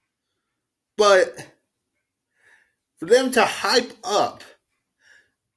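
A young man speaks casually, close to the microphone, in short bursts.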